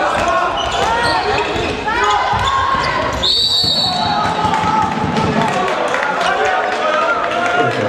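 Sneakers squeak sharply on a hard indoor court.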